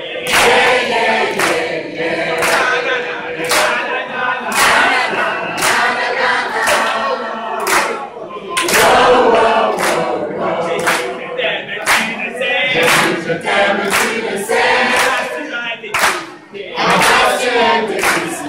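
A group of women and men sing loudly together.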